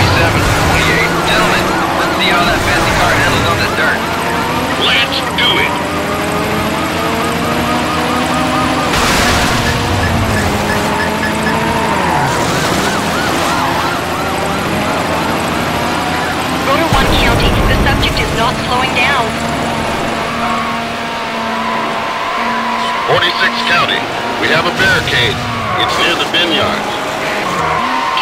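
A racing car engine roars and changes pitch as it speeds up and shifts gears.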